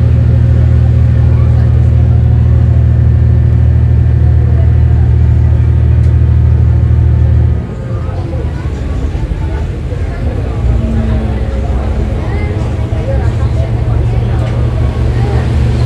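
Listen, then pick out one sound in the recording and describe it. Train wheels rumble on rails.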